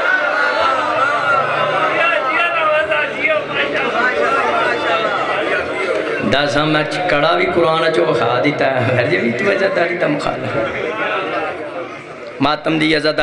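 A man speaks with passion into a microphone, heard through loudspeakers.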